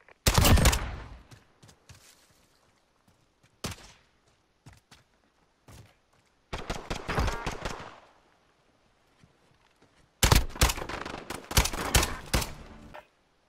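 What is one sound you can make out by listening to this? A sniper rifle fires loud gunshots that echo away.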